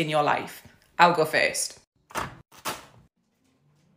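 A knife chops on a plastic cutting board.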